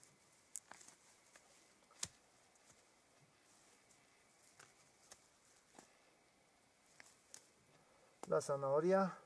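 Leafy stalks rustle and snap as they are handled.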